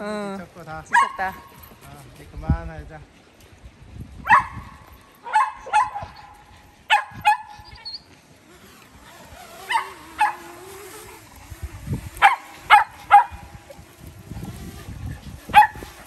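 Small dogs bark in short, sharp yaps, on and off.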